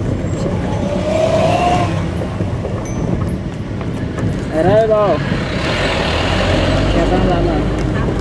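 A bus rumbles past close by.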